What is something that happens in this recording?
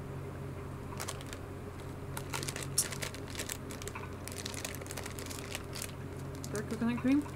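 A wrapper crinkles as it is handled.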